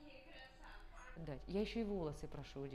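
A young girl speaks softly nearby.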